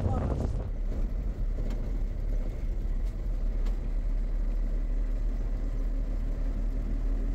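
Tyres roll over an asphalt road.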